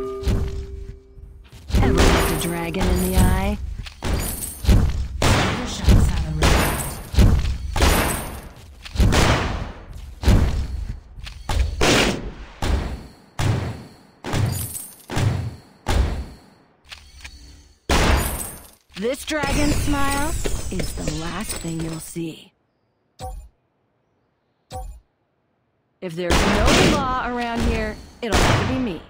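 Fighting sounds of rapid hits and magic blasts burst out again and again.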